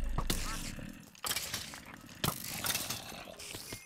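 A sword strikes a burning creature with sharp hits.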